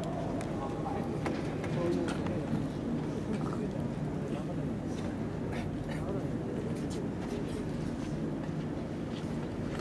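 A crowd murmurs and chatters in the distance outdoors.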